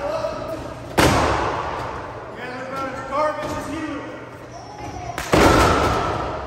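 A body slams onto a wrestling ring mat with a loud thud.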